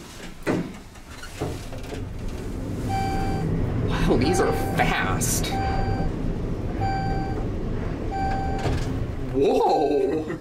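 An elevator hums steadily as it travels.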